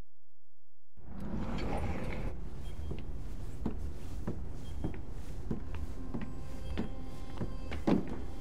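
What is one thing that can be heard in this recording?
Footsteps clank on a metal grate.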